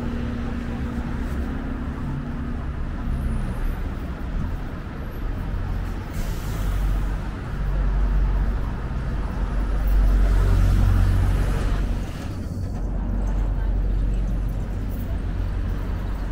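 Traffic rumbles steadily along a city street.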